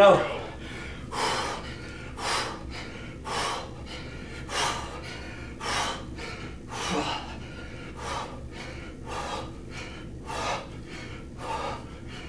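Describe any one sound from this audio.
A young man breathes out sharply in a steady rhythm.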